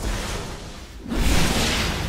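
An energy blast crackles and bursts.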